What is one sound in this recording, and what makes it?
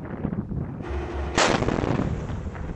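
A tank's main gun fires.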